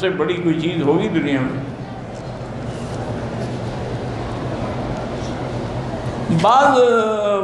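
An elderly man speaks slowly and earnestly into a microphone, heard through a loudspeaker.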